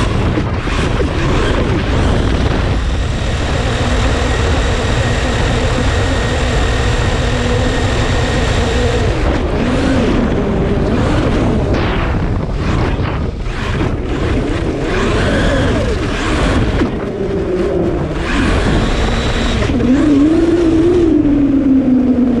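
An electric RC truck's brushless motor whines and rises and falls in pitch as it speeds across sand.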